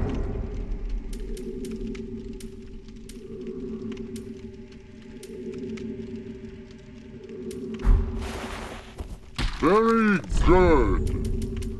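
Game menu clicks tick as items are selected.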